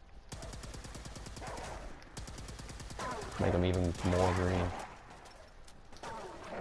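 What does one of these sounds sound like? A heavy gun fires in a rapid rattling burst.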